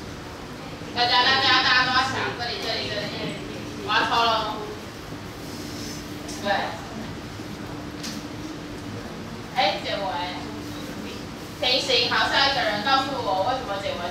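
A woman speaks clearly and with animation to a class.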